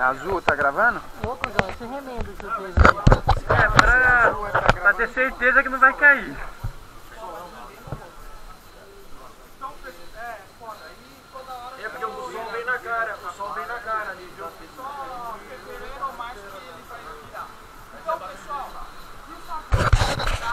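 Men talk and shout excitedly close by.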